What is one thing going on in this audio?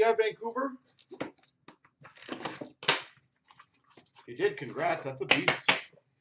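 A cardboard box rustles and scrapes as hands handle it.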